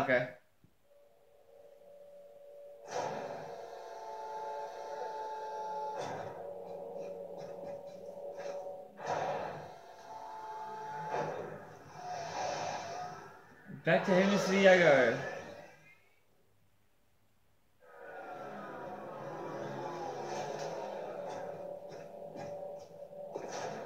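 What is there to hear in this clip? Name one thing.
Video game music plays from a television speaker.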